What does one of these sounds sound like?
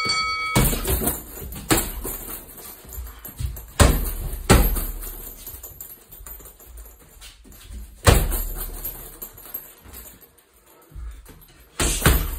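Gloved punches and kicks thud heavily against a punching bag.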